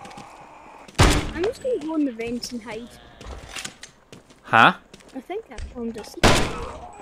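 Gunshots crack loudly in quick bursts.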